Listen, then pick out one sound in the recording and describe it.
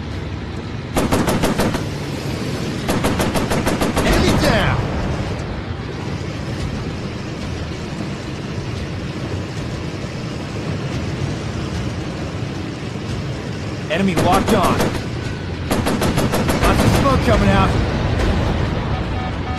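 Wind rushes past in a loud roar.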